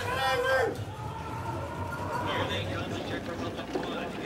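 Bobsled runners scrape over ice.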